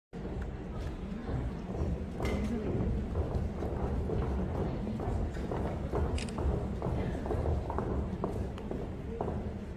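Feet step and shuffle across a wooden stage floor.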